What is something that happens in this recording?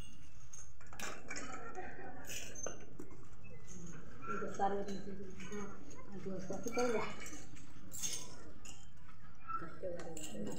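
Women talk nearby, calm and low.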